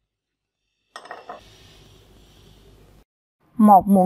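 A metal spoon scrapes against a small dish.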